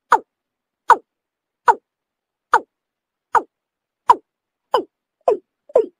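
A bird gives sharp, falling calls in quick, even repetition.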